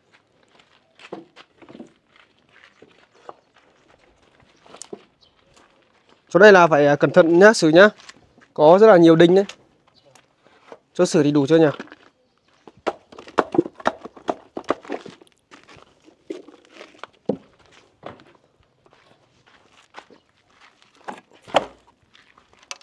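Concrete bricks clack and knock as they are stacked and handled.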